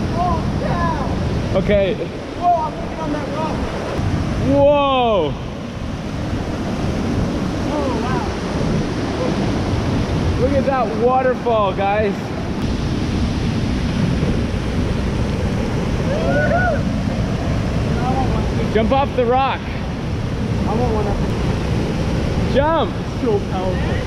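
A young man talks and calls out close by.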